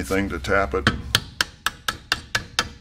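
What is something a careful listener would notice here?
A small metal mechanism clicks in quick, even succession.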